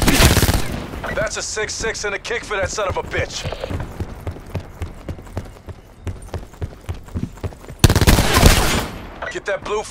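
A rifle fires loud rapid bursts.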